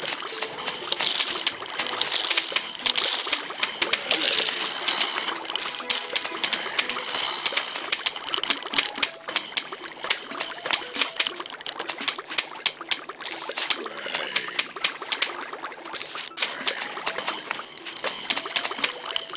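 Cartoon mushrooms puff out spores with bubbling sounds.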